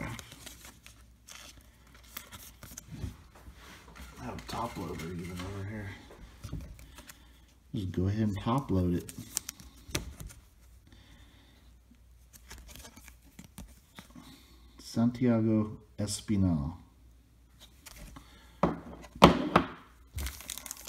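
A stiff plastic card case clicks and rustles as it is handled.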